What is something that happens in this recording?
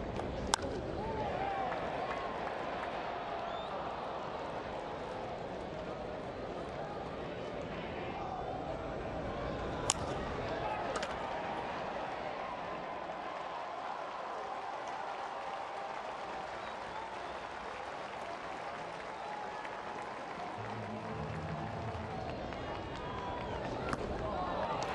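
A bat cracks sharply against a baseball.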